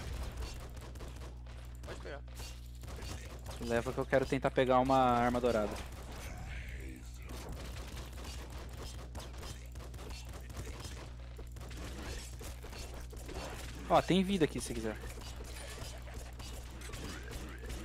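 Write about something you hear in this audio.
Small guns fire in rapid bursts.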